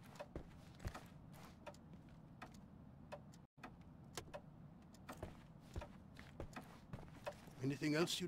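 Footsteps tap on a wooden floor.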